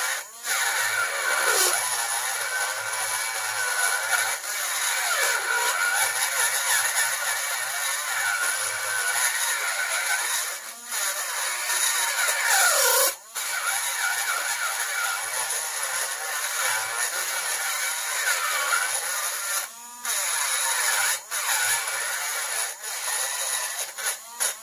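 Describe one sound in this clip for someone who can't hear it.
A small rotary tool grinds steadily against metal with a high whine.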